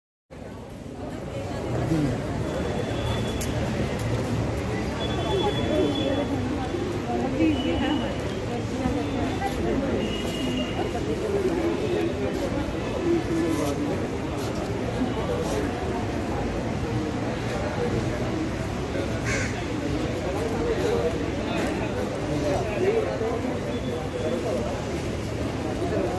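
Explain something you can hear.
Stiff paper sheets rustle and flap as they are leafed through.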